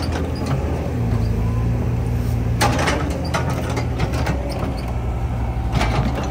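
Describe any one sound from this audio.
A metal bucket scrapes and thuds into soil.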